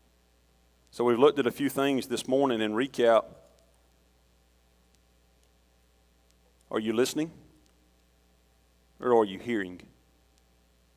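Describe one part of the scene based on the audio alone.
A middle-aged man speaks calmly through a microphone in a large echoing room, pausing between phrases.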